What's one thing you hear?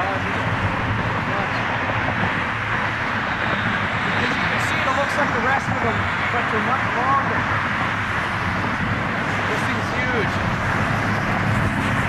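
A jet airliner's engines roar steadily as it approaches low overhead, heard outdoors in wind.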